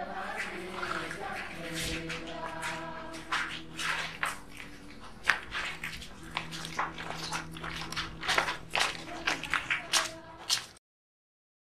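Footsteps shuffle on a stone floor.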